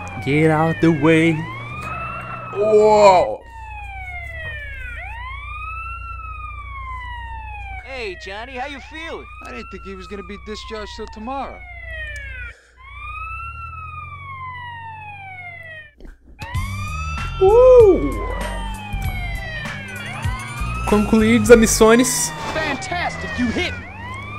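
An ambulance siren wails up and down.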